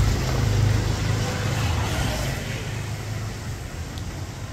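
A car engine hums close by as a car drives past on a street.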